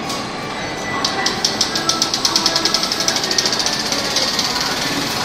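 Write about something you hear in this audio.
A film projector clatters with rapid clicks as it starts up.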